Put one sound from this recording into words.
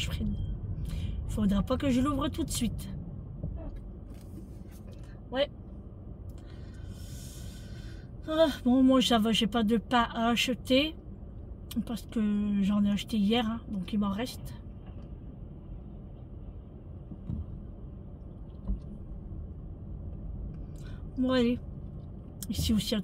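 A car engine hums low and steadily inside the cabin.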